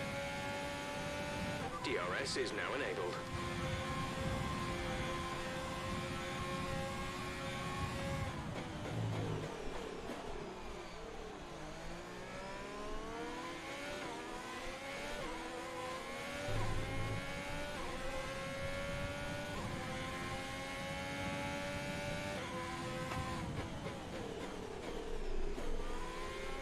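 A racing car engine roars and whines, rising and falling in pitch as it shifts gears and slows for corners.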